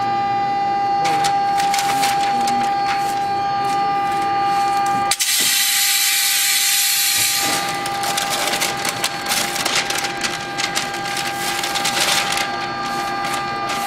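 Paper sheets rustle and crinkle.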